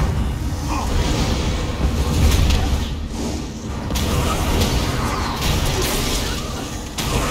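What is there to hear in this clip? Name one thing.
Weapons strike with sharp impacts.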